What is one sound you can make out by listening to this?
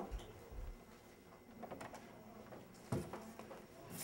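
A door opens with a click.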